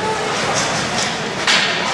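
Hockey sticks clack against the ice and the puck.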